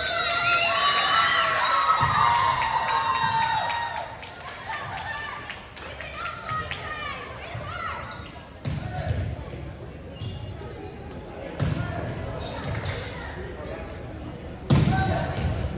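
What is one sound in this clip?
A volleyball thuds against hands and the floor.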